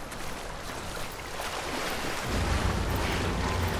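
Legs splash and wade through water.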